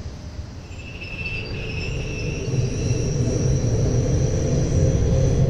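An electric train motor whines, rising as the train pulls away.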